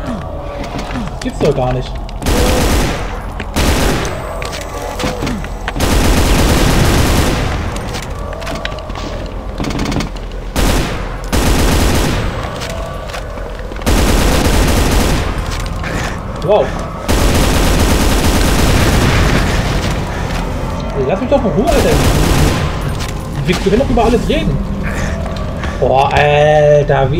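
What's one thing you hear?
Gunfire blasts rapidly and loudly.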